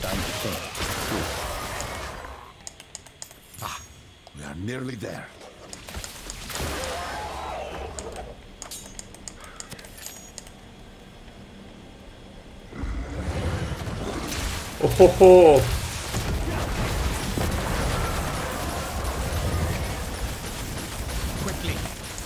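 Magic spells crackle and boom in a video game battle.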